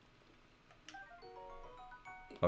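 A short bright chime melody plays.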